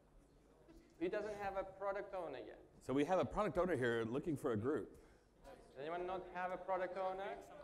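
A man speaks through a microphone in a large room, calmly giving instructions.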